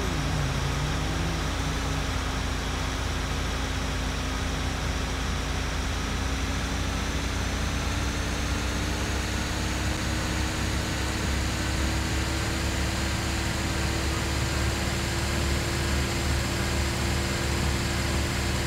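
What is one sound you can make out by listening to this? A truck engine hums steadily as it drives.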